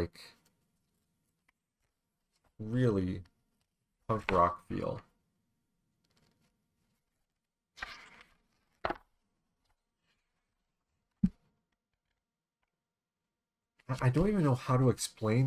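A man reads aloud calmly into a close microphone.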